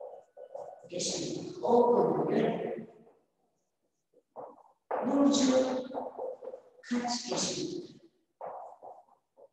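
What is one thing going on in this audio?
A young woman speaks calmly nearby, reading out slowly.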